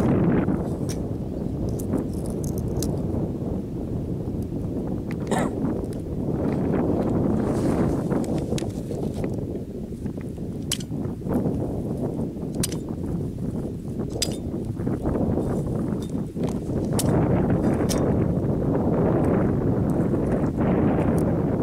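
Small shells clink and click together as they are handled.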